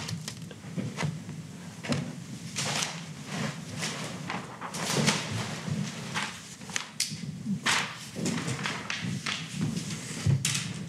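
An elderly man speaks calmly into a handheld microphone in a room with some echo.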